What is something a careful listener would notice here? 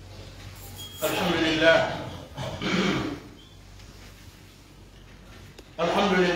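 An elderly man speaks into a microphone in an echoing room, in a slow chanting voice.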